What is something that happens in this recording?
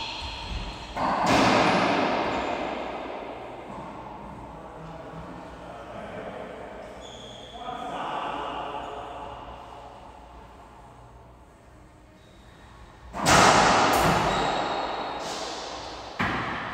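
A rubber ball smacks off a racket and the walls, echoing loudly in a large hard-walled court.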